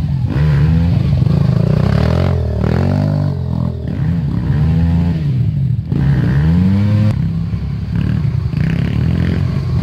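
A dirt bike engine revs loudly close by, rising and falling in pitch.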